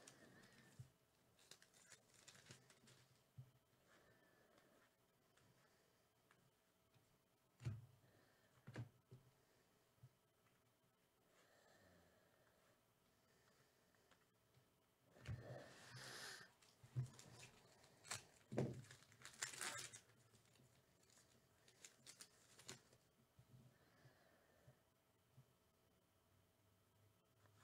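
Trading cards shuffle and slide against each other.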